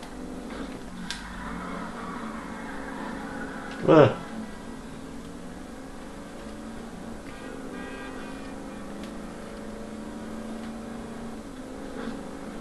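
A car engine hums steadily as a car drives along a road.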